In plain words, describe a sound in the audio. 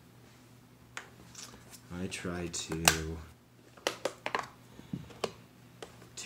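A plastic side brush clicks and snaps as it is pressed onto its mount.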